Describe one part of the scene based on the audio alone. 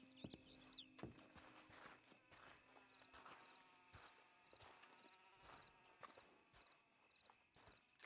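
Footsteps scuff on dry dirt.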